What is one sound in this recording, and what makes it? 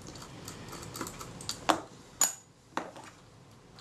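Small metal parts click faintly against each other.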